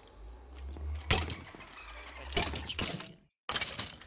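A sword strikes a creature with quick thuds.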